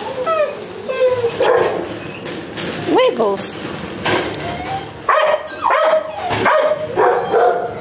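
A dog whines and yelps up close.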